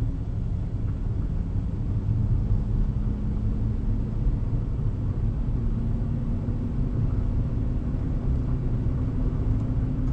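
Tyres roll on a smooth road.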